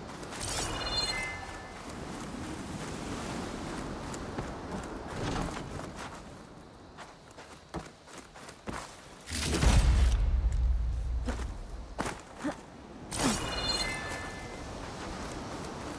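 Footsteps patter quickly over soft ground.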